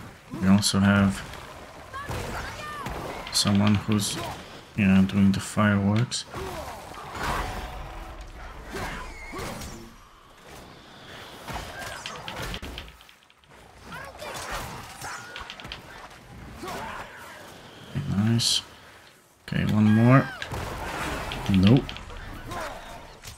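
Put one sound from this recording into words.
An axe strikes a beast with heavy, wet thuds.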